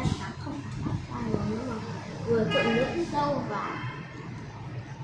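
A young girl speaks nearby in a high voice.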